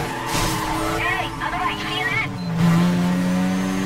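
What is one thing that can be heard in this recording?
Tyres screech as a car slides through a turn.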